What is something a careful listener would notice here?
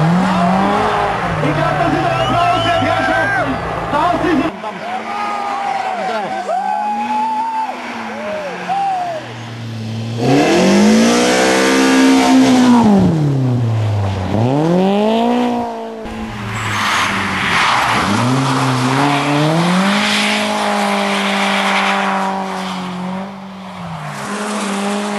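A rally car engine revs hard, its pitch rising and falling as gears change.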